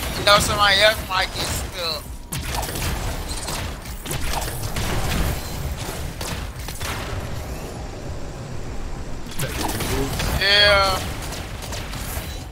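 Energy blasts and explosions rumble and crackle in a video game.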